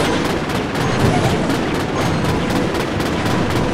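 A game tower fires repeated shots.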